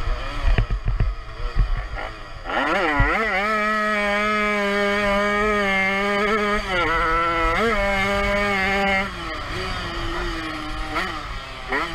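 A motorcycle engine revs hard close by, rising and falling in pitch.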